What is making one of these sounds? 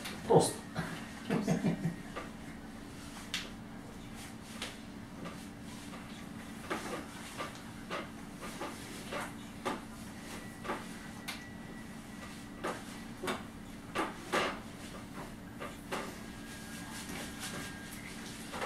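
Soft knocks and rustles come as a man's legs are moved and stretched.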